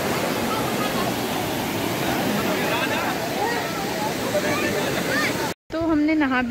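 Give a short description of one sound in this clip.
A waterfall rushes over rocks outdoors.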